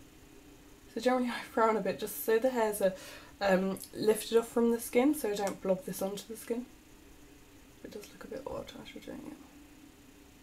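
A woman talks calmly and close up into a microphone.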